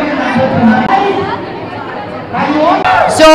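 A crowd of young people chatters loudly.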